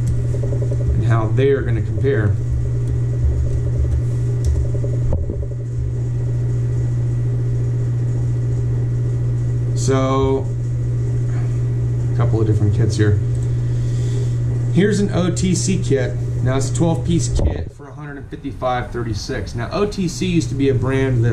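A man talks calmly into a microphone, close by.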